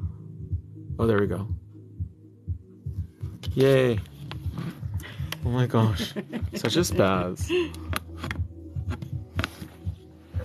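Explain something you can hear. A young man talks animatedly and close by, in a sing-song voice.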